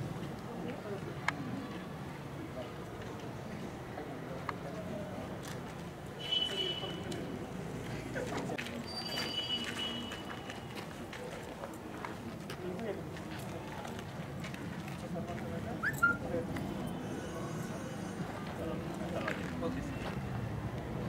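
A crowd of young girls chatters softly in the background.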